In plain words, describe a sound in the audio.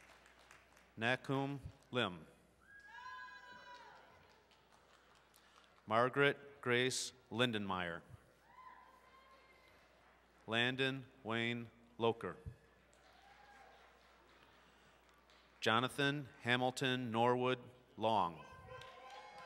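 A man reads out names over a loudspeaker in a large echoing hall.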